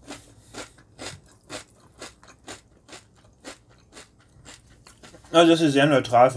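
A metal spoon scrapes and clinks in a bowl of cereal and milk.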